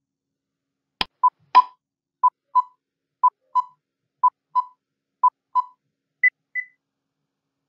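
A timer ticks steadily.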